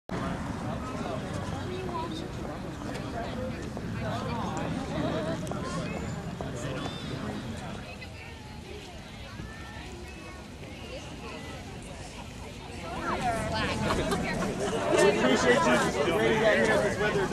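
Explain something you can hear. A crowd of men and women chatters outdoors nearby, growing louder.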